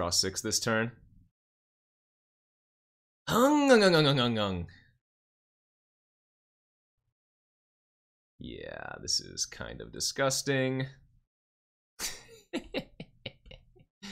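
A man talks with animation into a microphone, in short bursts with pauses.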